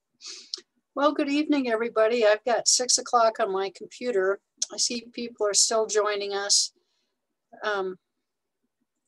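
An older woman speaks calmly over an online call.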